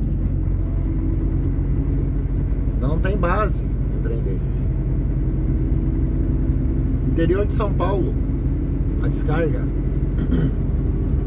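A vehicle's engine hums steadily as it drives along a road.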